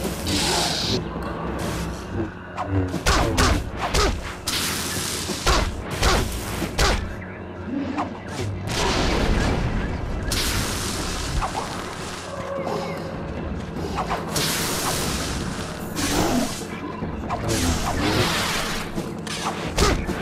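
Blows strike with sharp impacts.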